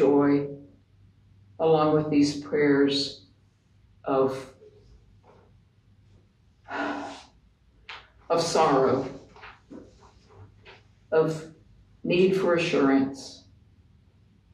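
An elderly woman speaks calmly and slowly, with pauses.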